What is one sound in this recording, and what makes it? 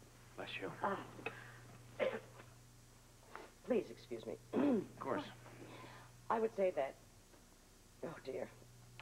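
A woman speaks calmly and firmly.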